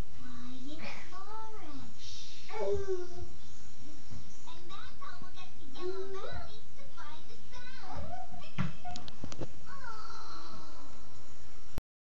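A toddler babbles and squeals nearby.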